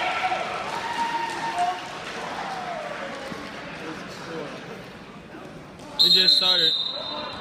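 Wrestlers' bodies thud and scuffle on a mat.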